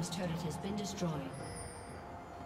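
A short game alert chimes.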